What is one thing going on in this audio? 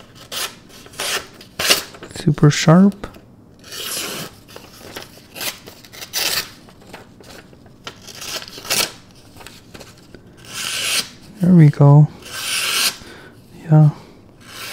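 A knife slices through stiff paper in short rasping strokes.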